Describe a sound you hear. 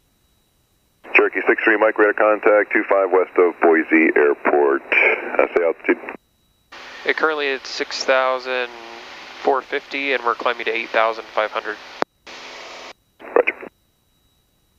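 A man speaks calmly through an aircraft intercom.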